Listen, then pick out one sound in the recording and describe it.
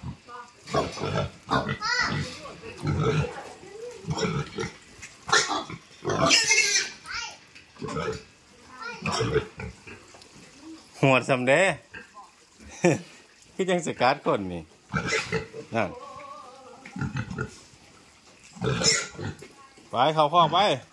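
A pig squeals loudly.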